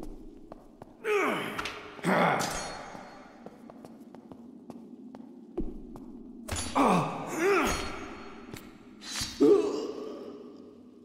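A blade swishes sharply through the air several times.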